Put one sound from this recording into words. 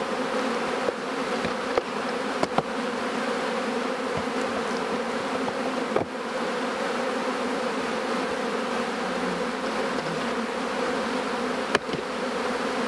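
Wooden hive frames knock and clack now and then.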